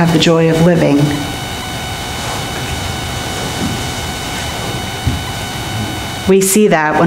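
An elderly man speaks slowly through a microphone in an echoing hall.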